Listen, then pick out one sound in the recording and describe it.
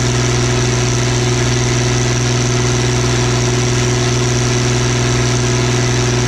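A diesel tractor engine idles with a steady, low rumble close by.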